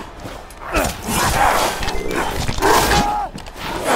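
A creature snarls and growls up close.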